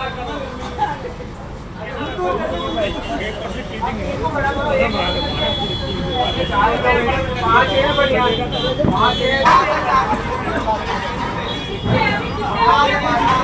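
Several men talk and chatter together nearby.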